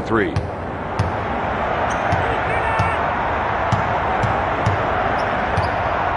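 A basketball bounces with regular thumps on a wooden floor.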